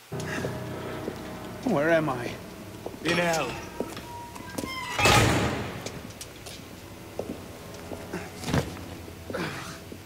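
A young man groans and gasps in pain close by.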